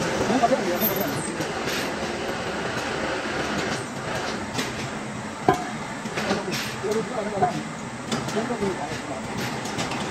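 A heavy chain clinks against metal.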